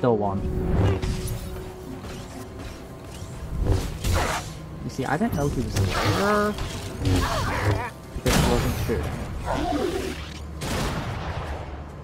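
Video game blasters fire and energy blades clash in quick bursts.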